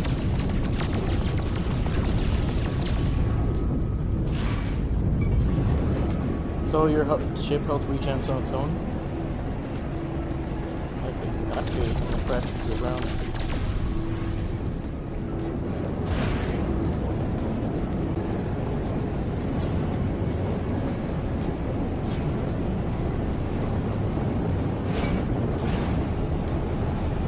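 A spaceship engine roars steadily.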